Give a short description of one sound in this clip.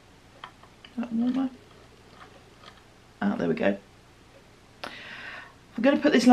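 A middle-aged woman speaks in short bursts, close to a microphone.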